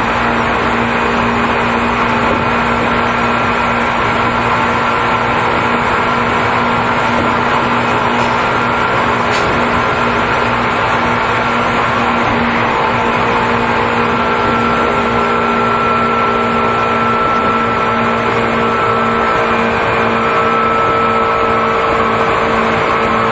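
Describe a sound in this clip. An electric train hums steadily while standing still.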